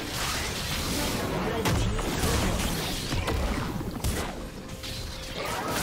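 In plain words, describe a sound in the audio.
Game spell effects crackle and burst in a busy fight.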